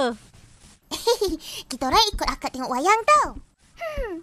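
A young boy speaks excitedly.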